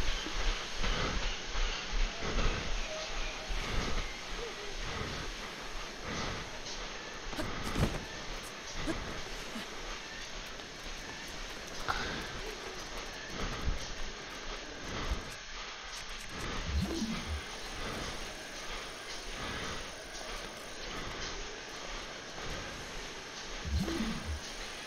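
Footsteps thump steadily on a treadmill.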